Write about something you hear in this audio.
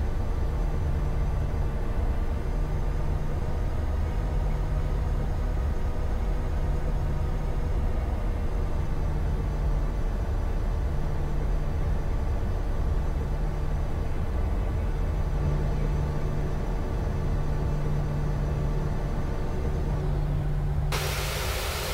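A jet engine hums steadily as an airliner taxis.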